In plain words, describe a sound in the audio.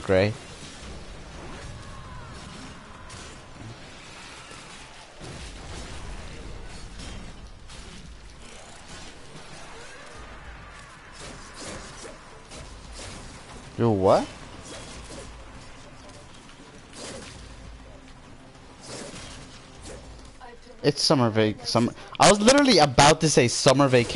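Blades slash and clang in quick bursts.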